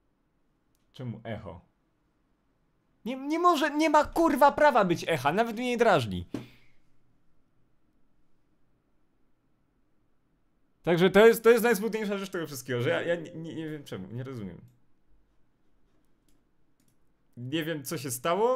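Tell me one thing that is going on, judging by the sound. A young man talks with animation into a nearby microphone, in bursts with pauses.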